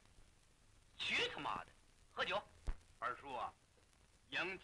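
A young man speaks loudly and with animation.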